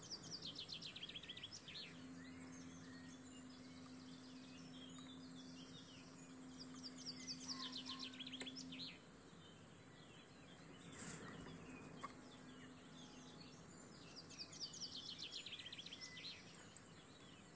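Thread rasps softly as it is wound around a small hook.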